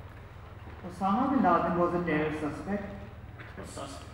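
A second young man speaks through a microphone.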